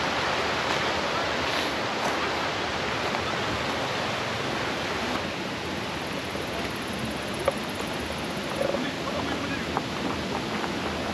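Wind blows steadily outdoors and rustles leaves.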